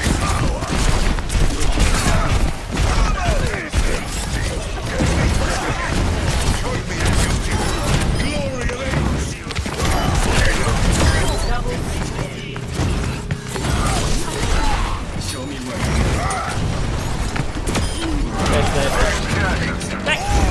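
Rapid gunfire and blasts from a game ring out.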